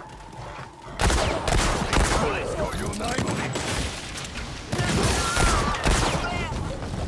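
Revolver shots ring out loudly.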